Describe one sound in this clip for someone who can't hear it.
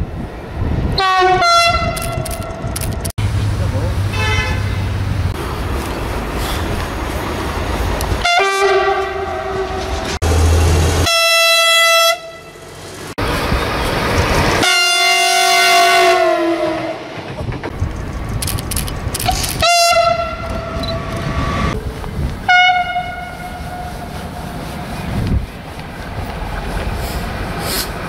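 Trains rumble and clatter past on the tracks.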